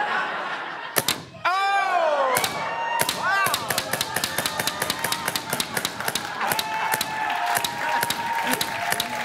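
A paintball gun fires in rapid bursts.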